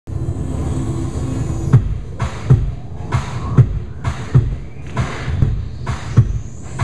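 High heels step and tap on a wooden floor.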